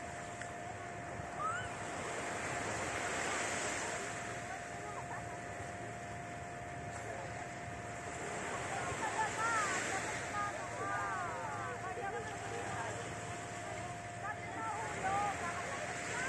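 Small waves wash onto a sandy shore in slow, regular swells.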